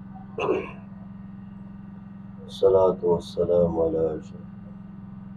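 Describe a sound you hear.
A man speaks calmly and slowly into a close microphone.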